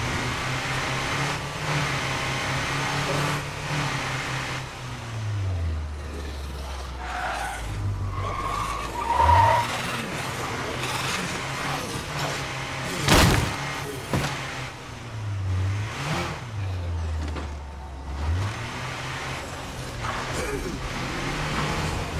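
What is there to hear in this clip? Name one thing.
An engine hums steadily and its pitch rises and falls as the vehicle speeds up and slows down.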